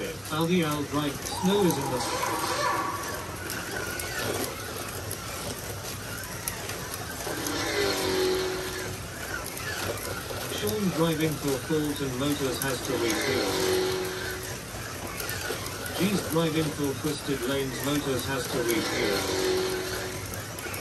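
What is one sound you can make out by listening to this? Small electric slot cars whir around a track.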